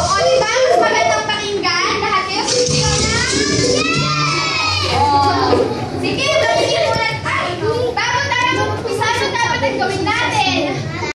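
A group of young children sing together loudly, close by.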